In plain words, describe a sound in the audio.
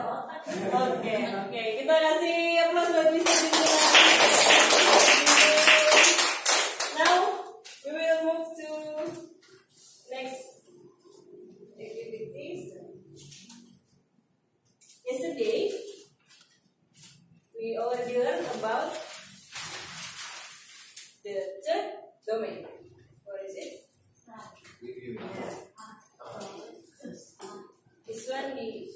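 A woman speaks with animation to a group.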